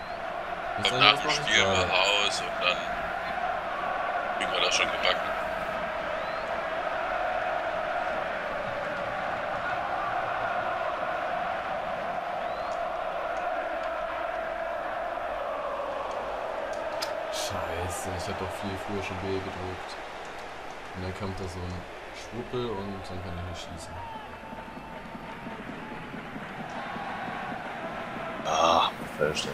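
A large stadium crowd roars and murmurs steadily.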